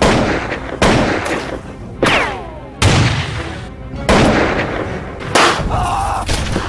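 Gunshots bang loudly one after another, each leaving a short echo.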